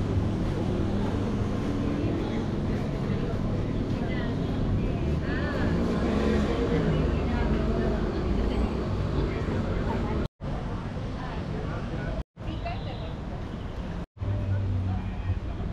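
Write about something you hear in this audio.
Footsteps of passers-by tap on a paved walkway.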